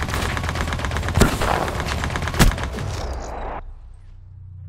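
Automatic rifle fire crackles in bursts.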